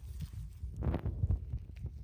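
Grass and dry leaves rustle as a mushroom is pulled from the ground.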